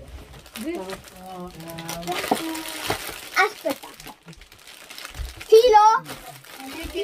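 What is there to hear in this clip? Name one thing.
A boy speaks with animation close by.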